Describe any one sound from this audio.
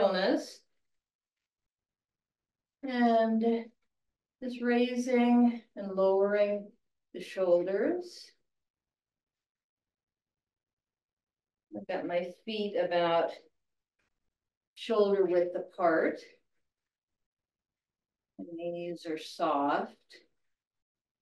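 An elderly woman speaks calmly into a microphone, in short phrases with pauses.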